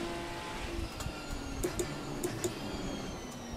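A car's gearbox clicks sharply through downshifts.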